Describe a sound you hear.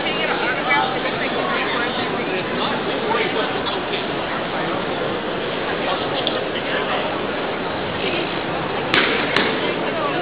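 A crowd murmurs and chatters throughout a large echoing hall.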